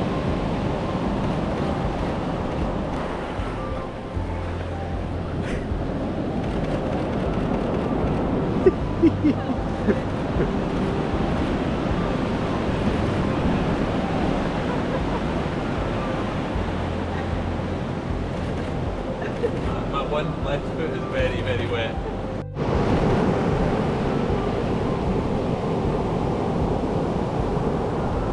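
Waves wash up on a beach.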